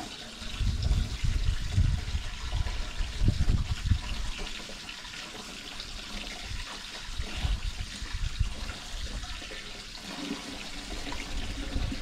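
Someone scrubs and splashes water nearby.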